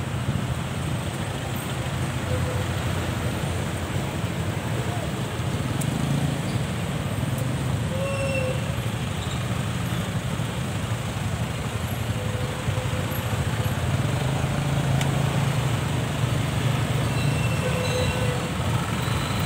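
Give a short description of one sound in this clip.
Motorcycle engines rumble and idle close by in slow traffic.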